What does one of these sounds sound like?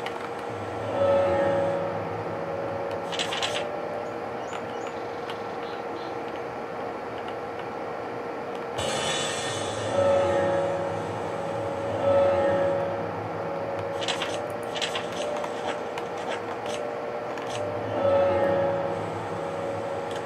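A video game plays short, bright menu chimes.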